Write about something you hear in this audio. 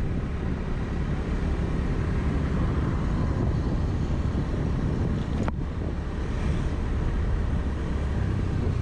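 Wind rushes loudly past a riding scooter.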